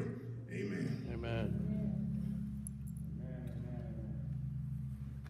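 A man speaks over a microphone in a large echoing hall.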